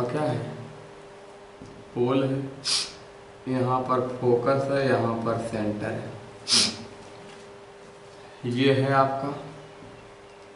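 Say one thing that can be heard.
A young man speaks calmly close by, explaining in short bursts.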